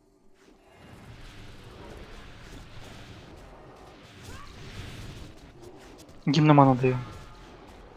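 Magic fire effects whoosh and crackle in a battle.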